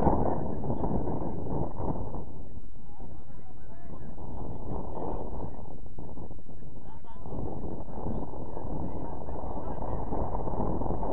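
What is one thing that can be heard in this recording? Wind rumbles steadily against the microphone outdoors.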